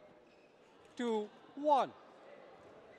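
A man shouts loudly and briefly in a large echoing hall.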